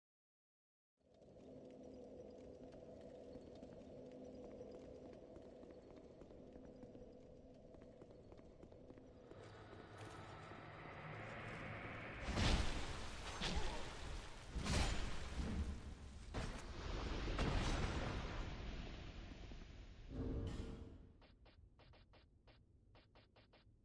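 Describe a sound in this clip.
Armored footsteps clank on a stone floor.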